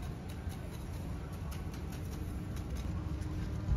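Hands scrape through soil.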